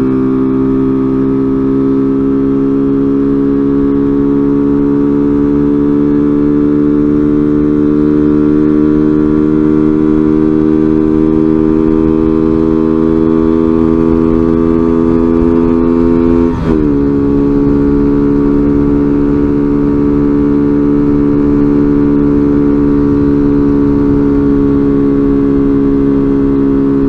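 A motorcycle engine hums steadily at cruising speed, its pitch slowly creeping up.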